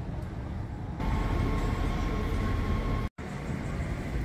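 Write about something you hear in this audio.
A train rumbles in a station.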